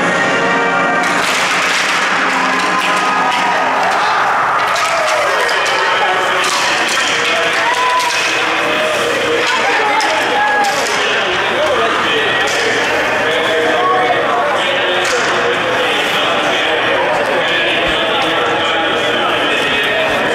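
Many young men's voices chatter and shout together in a large echoing arena.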